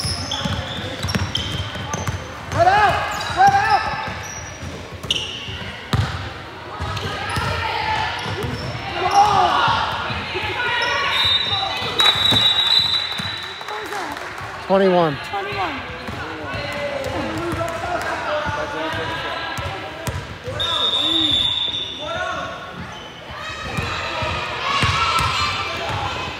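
Young girls shout and call out to each other in a large echoing gym.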